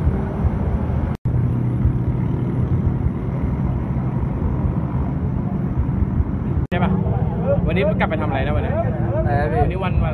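Engines idle and rumble nearby.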